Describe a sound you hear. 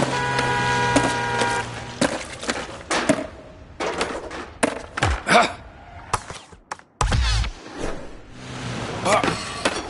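A skateboard clacks sharply as it lands.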